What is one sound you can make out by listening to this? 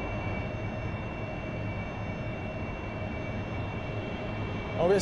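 A jet engine hums steadily inside a cockpit.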